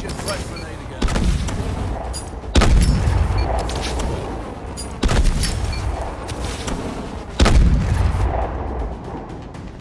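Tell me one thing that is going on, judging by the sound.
Grenades explode with deep booms.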